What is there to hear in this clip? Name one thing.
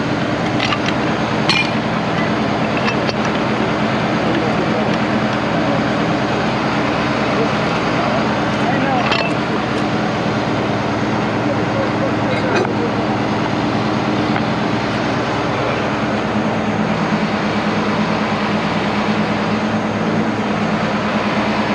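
A large truck engine rumbles steadily nearby.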